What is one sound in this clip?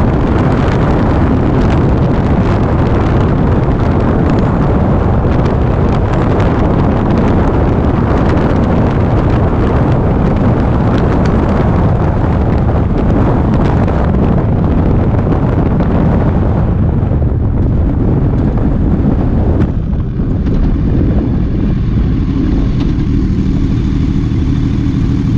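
Wind roars loudly past a moving motorcycle.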